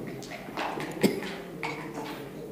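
A chess clock button clicks.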